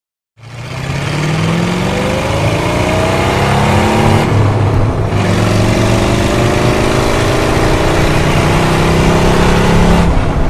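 A loud car engine roars and revs up through the gears.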